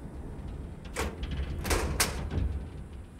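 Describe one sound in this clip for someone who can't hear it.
A metal gate clanks open.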